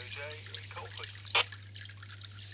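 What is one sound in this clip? A radio's buttons click under a finger.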